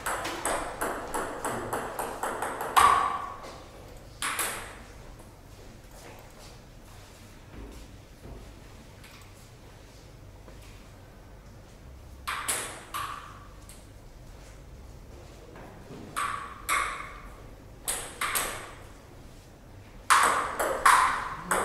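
A ping pong ball clicks quickly back and forth between paddles and a table.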